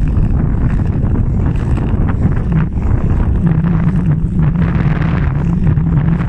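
Skate blades scrape and hiss steadily across ice close by.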